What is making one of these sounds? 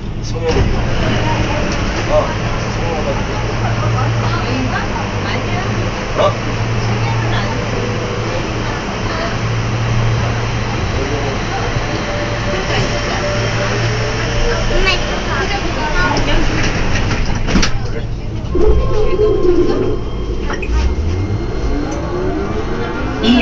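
A train hums and rumbles steadily as it runs along the track.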